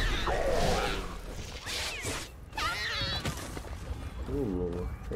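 Footsteps patter quickly on grass.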